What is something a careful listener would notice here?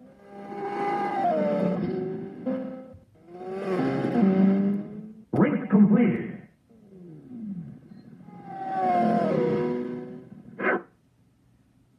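A motorbike engine revs and whines at high speed.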